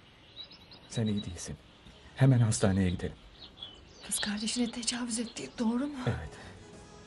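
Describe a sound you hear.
A young woman speaks breathlessly, close by.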